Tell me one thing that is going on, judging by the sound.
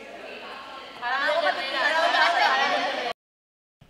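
People applaud.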